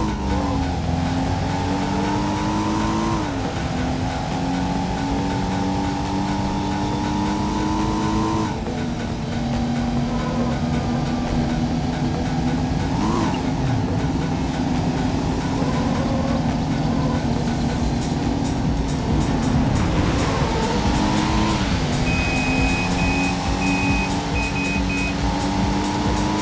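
A car engine roars and shifts up through the gears.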